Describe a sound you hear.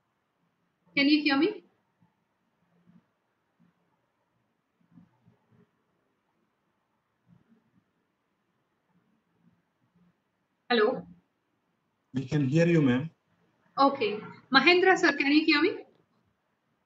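A young woman speaks calmly in short bursts over an online call.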